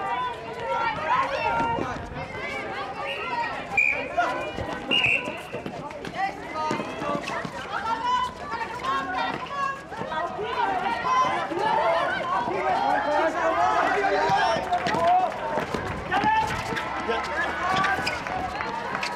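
Young women call out and shout to each other across an outdoor court.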